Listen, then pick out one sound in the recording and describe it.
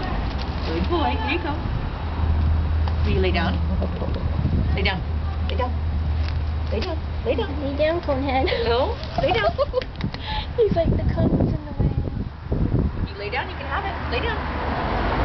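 A young woman talks softly and calmly up close.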